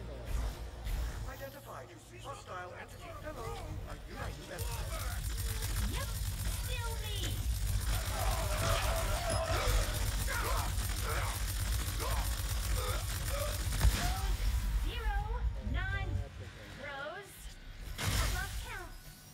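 Game characters talk with animated voices through speakers.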